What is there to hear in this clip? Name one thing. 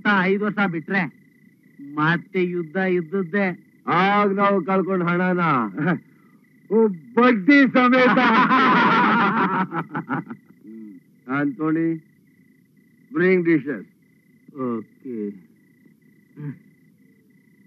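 Several adult men talk with animation, close by.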